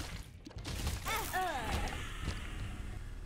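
A short descending jingle plays.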